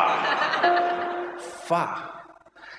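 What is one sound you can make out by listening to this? An audience laughs in a large hall.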